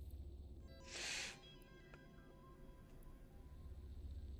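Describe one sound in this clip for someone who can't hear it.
An electronic chime rings out with a short ringing tail.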